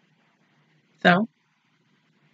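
A young woman lets out a short, loud vocal sound close by.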